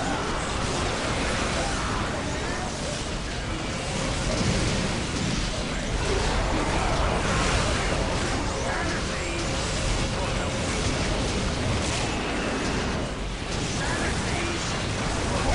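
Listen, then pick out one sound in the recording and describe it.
Gunfire rattles in a fierce battle.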